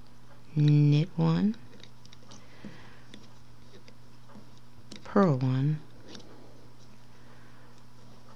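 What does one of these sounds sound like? A metal hook clicks softly against plastic pegs.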